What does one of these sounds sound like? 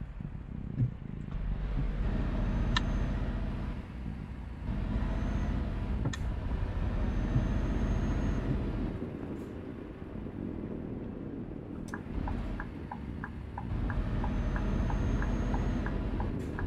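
A truck engine rumbles steadily, rising and easing off.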